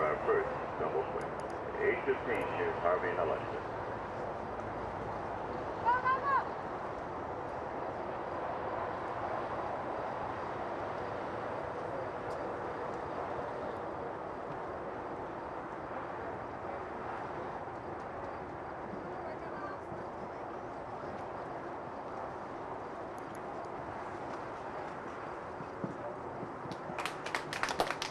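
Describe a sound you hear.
A horse's hooves thud on soft sand at a canter.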